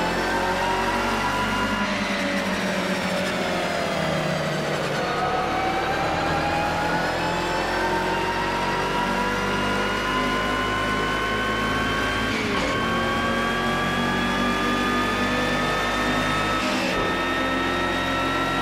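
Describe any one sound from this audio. Other racing car engines drone nearby.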